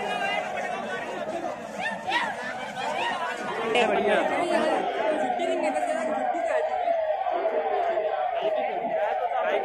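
A large crowd of young men shouts and chants outdoors.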